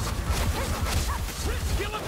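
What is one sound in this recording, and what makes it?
A rat creature squeals.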